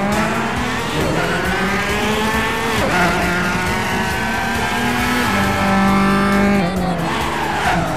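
A racing car engine roars at high revs, rising and dropping in pitch as gears shift.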